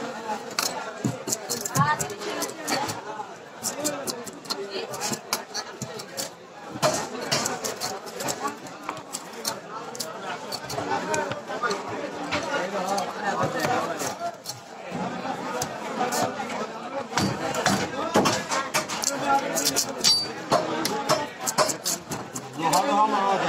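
A knife scrapes scales off a fish on a metal table.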